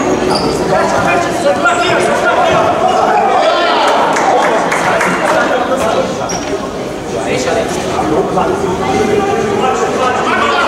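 A crowd of spectators cheers and shouts throughout a large echoing hall.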